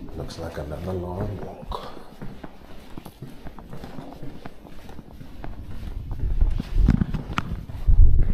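Footsteps thud softly on carpet.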